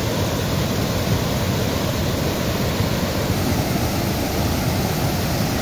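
Water pours steadily over a small weir with a loud, rushing splash.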